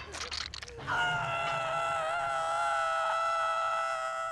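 A woman screams in pain.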